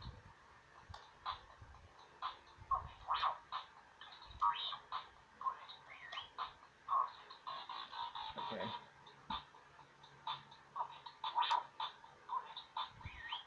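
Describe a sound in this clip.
A small plastic toy clicks and rattles in hands.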